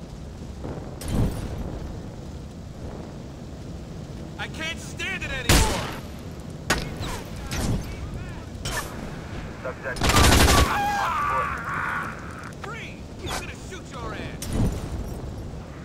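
Loud blasts go off in bursts.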